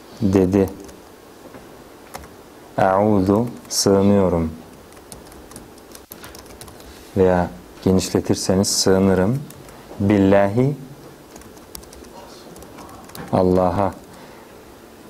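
A young man speaks slowly and calmly close to a microphone, in short phrases with pauses.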